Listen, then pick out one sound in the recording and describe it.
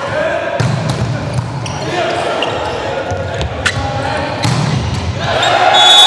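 A ball is hit sharply during a volleyball rally.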